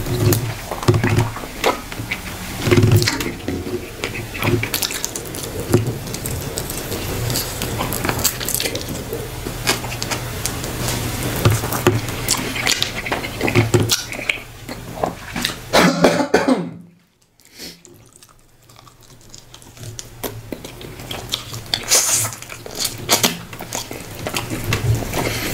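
Fingers squish and tear at soft food close to a microphone.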